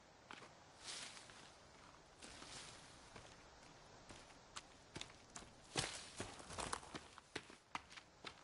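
Footsteps rustle through tall grass and undergrowth.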